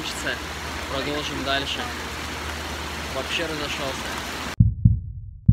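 A young man speaks close to the microphone.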